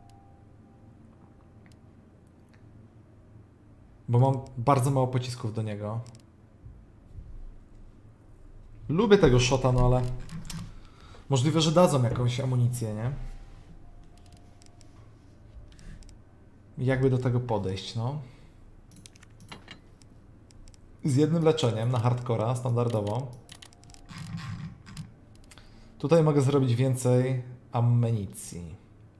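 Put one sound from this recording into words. Soft menu clicks tick as a cursor moves between items.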